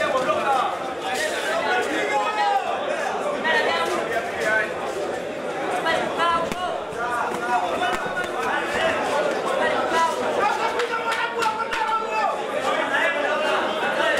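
A crowd shouts and cheers throughout, echoing in a large hall.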